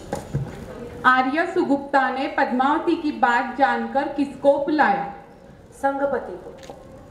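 A woman speaks into a microphone over loudspeakers with animation.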